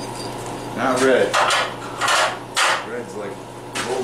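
Metal clanks on metal.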